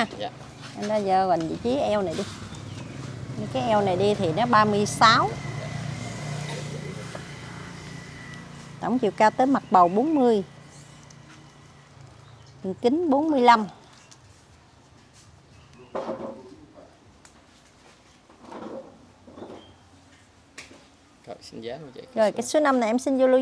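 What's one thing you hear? A middle-aged woman talks calmly and closely.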